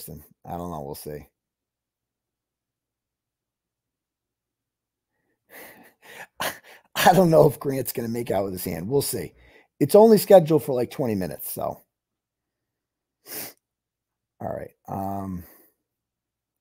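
A man speaks with animation into a close microphone, with pauses.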